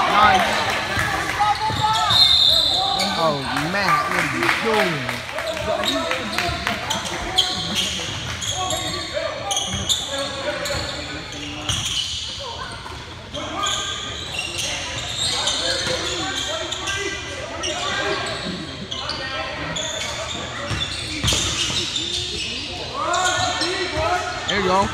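Spectators and players talk and call out, echoing in a large gym.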